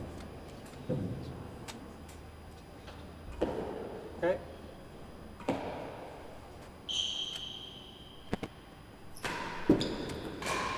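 A racket strikes a ball with a sharp crack in an echoing hall.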